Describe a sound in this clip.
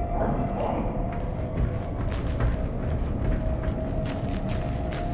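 Footsteps thud on a hard floor at a walking pace.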